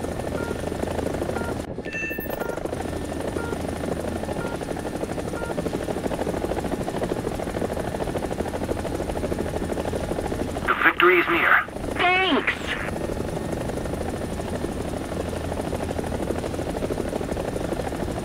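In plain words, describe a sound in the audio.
A helicopter's rotor thumps steadily close by.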